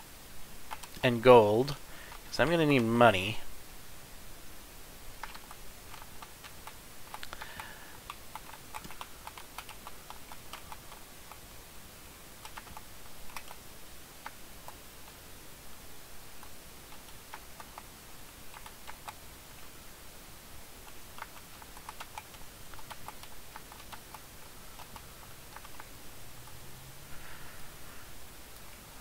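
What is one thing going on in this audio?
Short game sound effects tap and click as a small character strikes plants and trees.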